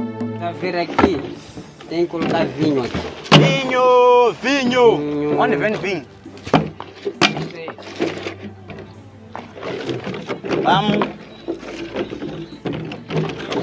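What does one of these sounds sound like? Plastic containers knock and rattle.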